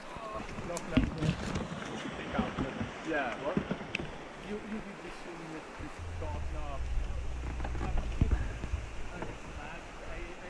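A paddle knocks and scrapes against branches and rocks.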